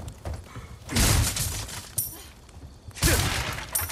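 A knife strikes and smashes a wooden barrel with a loud crack.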